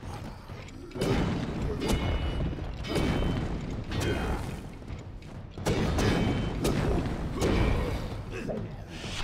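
Magic blasts burst with fiery whooshes.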